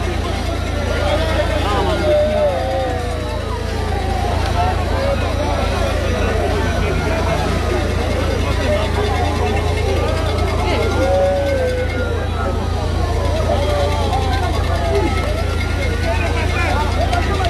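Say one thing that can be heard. A large crowd of men talks and calls out loudly all around, close by.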